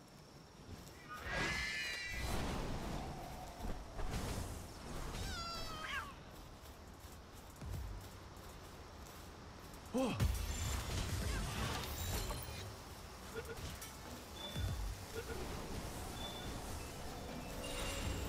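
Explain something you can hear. A blade swishes through the air in quick strikes.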